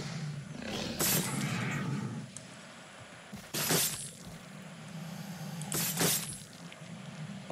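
A game alligator growls and snarls while fighting.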